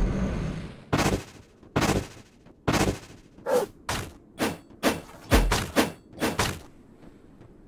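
Sharp electronic hit sounds strike in quick bursts, one after another.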